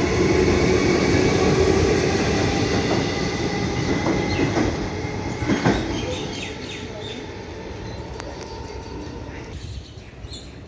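An electric train rumbles out along the tracks and fades into the distance.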